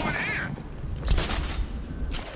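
A grappling line fires with a sharp mechanical shot.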